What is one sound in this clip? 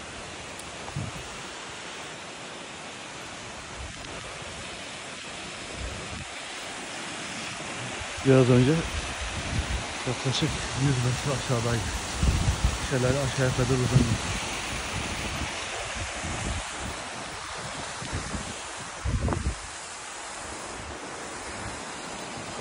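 A waterfall rushes steadily in the distance.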